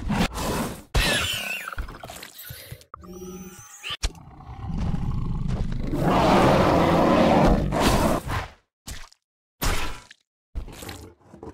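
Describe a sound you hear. Heavy blows land with sharp thuds.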